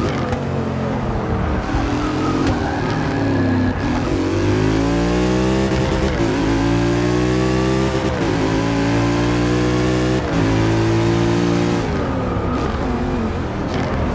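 A racing car engine roars and revs up through the gears, dropping in pitch at each gear change.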